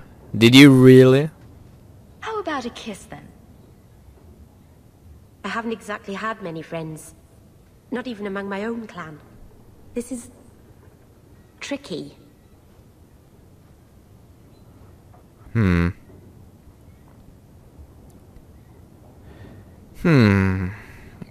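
A young woman speaks softly and calmly, with pauses.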